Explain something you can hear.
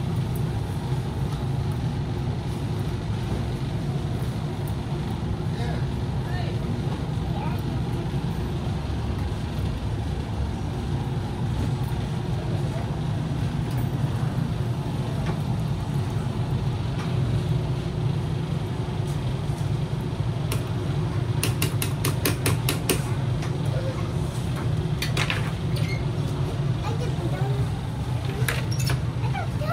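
An arcade machine hums steadily.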